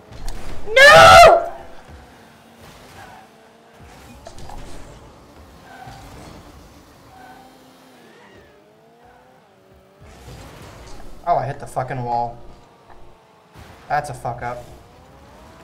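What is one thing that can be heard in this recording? A car engine hums and revs.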